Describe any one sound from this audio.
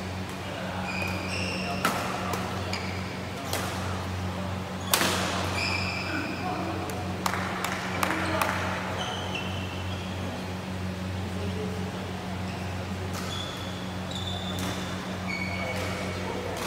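Sports shoes squeak sharply on a court floor.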